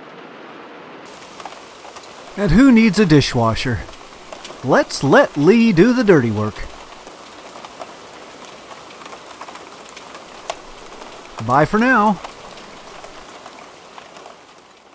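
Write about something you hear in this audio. Water splashes and trickles steadily.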